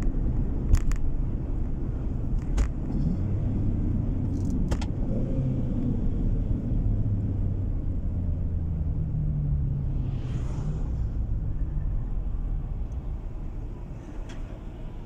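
A car engine hums steadily from inside as the car drives along a road.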